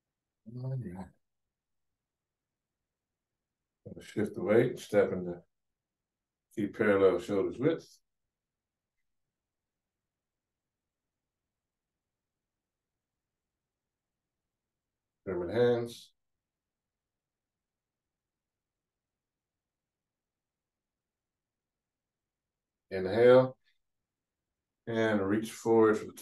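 A man speaks calmly in short phrases with long pauses, heard through a microphone.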